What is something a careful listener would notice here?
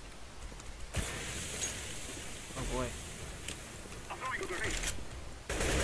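A smoke grenade hisses loudly as it pours out smoke.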